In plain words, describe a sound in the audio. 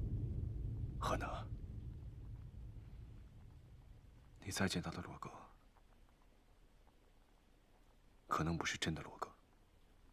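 A young man speaks quietly and sadly.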